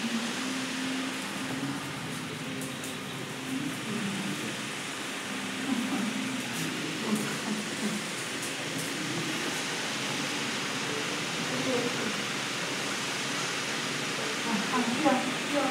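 A dog growls and whines playfully.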